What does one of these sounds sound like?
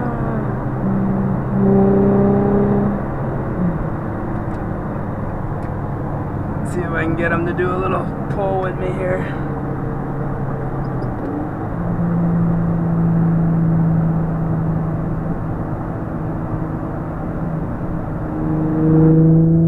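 Tyres roar on a highway.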